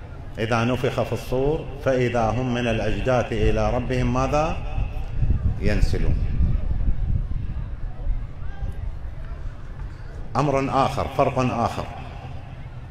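An elderly man chants slowly and mournfully through a microphone and loudspeakers, in an echoing hall.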